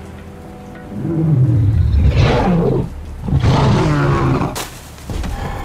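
A giant beast roars loudly and deeply.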